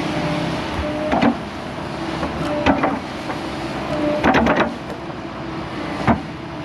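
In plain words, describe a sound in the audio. Dirt and roots tumble and thud as an excavator bucket dumps them.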